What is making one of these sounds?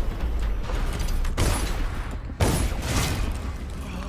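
A heavy metal hatch clanks open.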